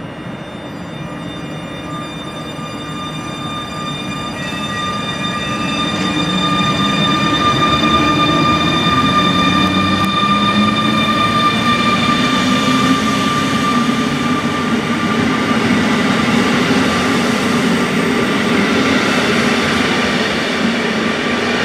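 An electric locomotive hums loudly as it pulls a passenger train past, growing louder.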